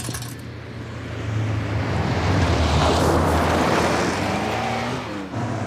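A car engine roars as it drives past close by.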